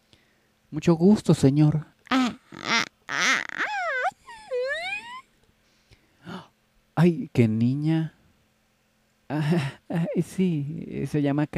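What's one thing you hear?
A young girl speaks softly and hesitantly, close by.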